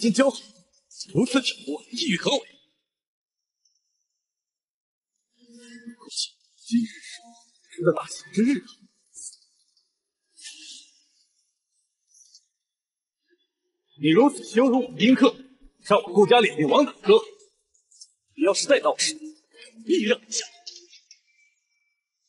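A young man speaks sharply and angrily, close by.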